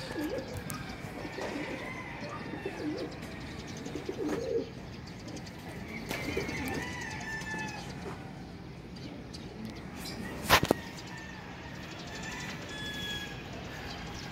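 A flock of birds calls faintly in the distance.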